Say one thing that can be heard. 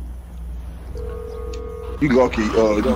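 A phone rings out on the line.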